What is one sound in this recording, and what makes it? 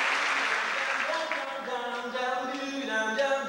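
A group of men and women sing together in a large echoing hall.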